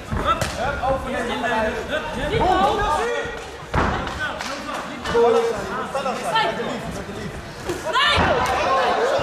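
Punches and kicks land with dull thuds.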